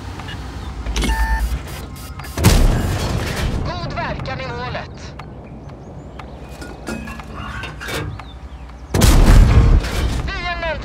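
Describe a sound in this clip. Shells hit armour with sharp metallic clangs.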